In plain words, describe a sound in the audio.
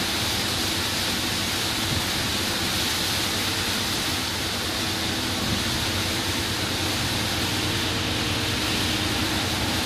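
Rain patters on the windscreen.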